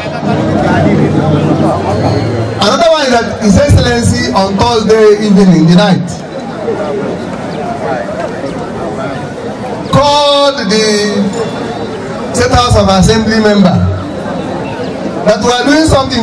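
A crowd chatters and murmurs nearby.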